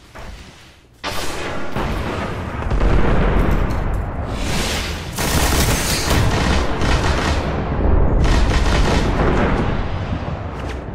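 A video game automatic rifle fires rapid bursts.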